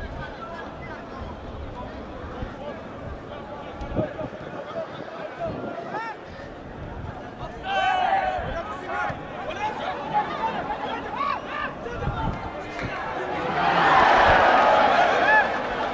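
A crowd of spectators chatters and calls out in a stadium.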